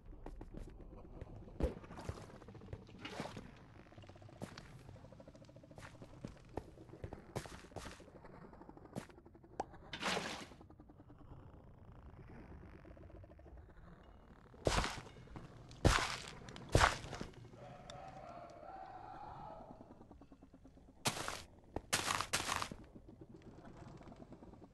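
Water ripples gently.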